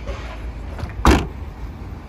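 A car's tailgate thumps shut.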